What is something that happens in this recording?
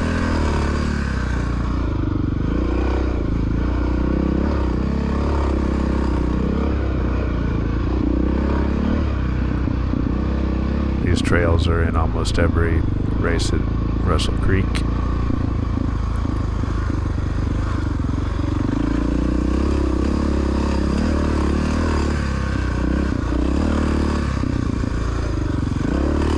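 A dirt bike engine roars and revs close by.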